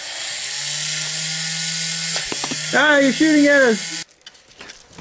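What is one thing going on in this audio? A small toy robot's motor whirs steadily.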